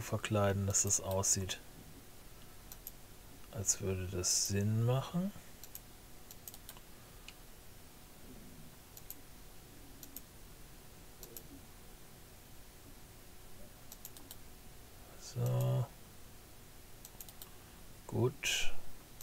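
A man speaks in short bursts into a close microphone.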